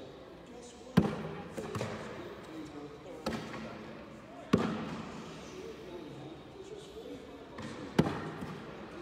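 Thrown objects hit a wooden target with sharp knocks.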